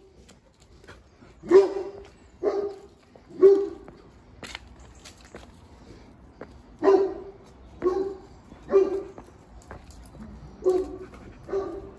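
Footsteps walk down stone steps outdoors.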